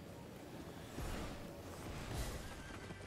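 Feet thump down on a stone floor.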